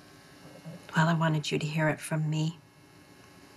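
A woman speaks quietly, close by.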